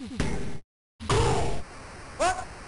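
A boxer crashes to the mat.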